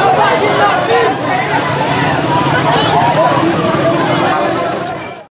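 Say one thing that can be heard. A large crowd of young people chants and shouts outdoors.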